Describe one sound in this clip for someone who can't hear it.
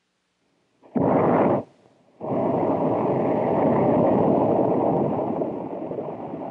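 A rocket engine roars loudly on a test stand.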